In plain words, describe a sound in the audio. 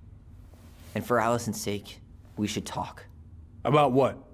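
A man in a deep voice speaks calmly in reply.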